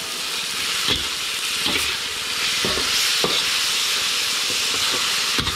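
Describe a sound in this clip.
A metal ladle scrapes and clanks against a wok.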